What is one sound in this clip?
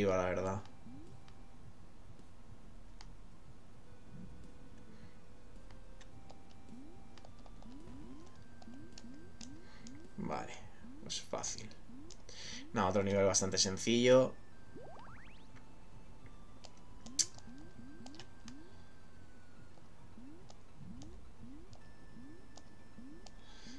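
Short soft rising blips repeat as a small creature swims in a video game.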